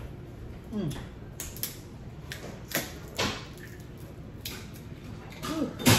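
A woman chews and smacks her lips.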